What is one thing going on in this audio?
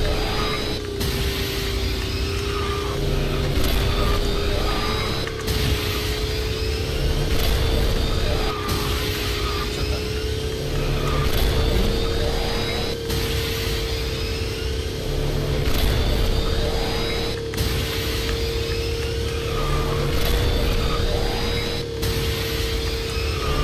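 A racing kart engine hums steadily at high speed.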